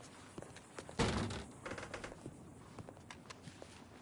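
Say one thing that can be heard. A door opens with a creak.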